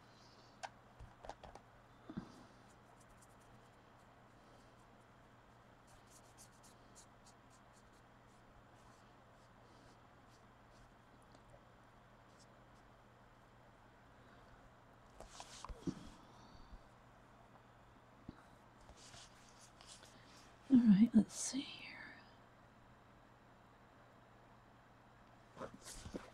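A small brush taps and dabs lightly on a hard surface.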